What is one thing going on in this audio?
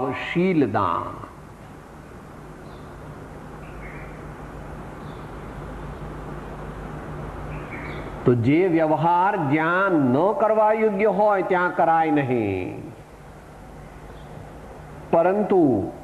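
An elderly man speaks with animation, close by, with long pauses.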